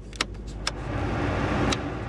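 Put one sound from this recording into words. A dashboard knob clicks as it turns.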